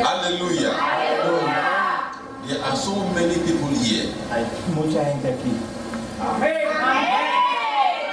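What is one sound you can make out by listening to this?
A second man answers into another microphone.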